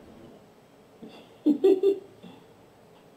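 A young man laughs briefly close to a microphone.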